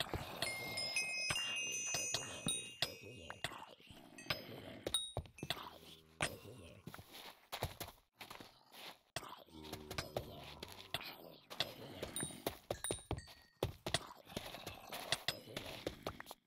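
A sword strikes zombies with quick swishing hits.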